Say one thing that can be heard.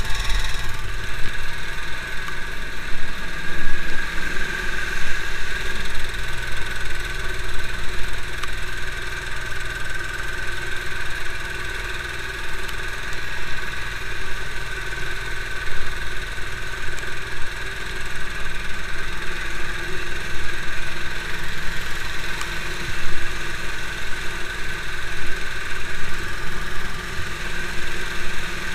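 A vehicle engine drones steadily up close.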